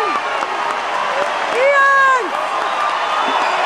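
A man shouts out to a cheering crowd.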